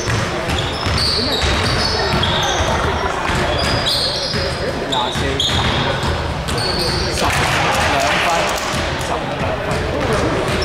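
Young men call out during play in a large echoing hall.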